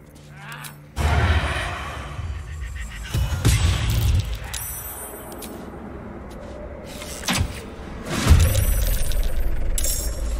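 Weapon strikes land with loud, sudden impacts.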